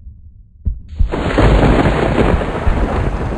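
Thunder crashes loudly.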